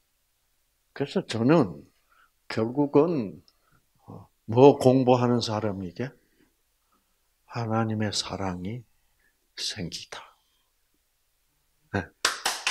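An elderly man speaks with animation through a microphone, in pauses.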